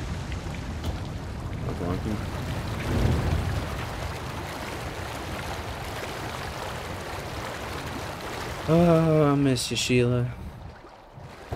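Water churns and splashes in a steady rush.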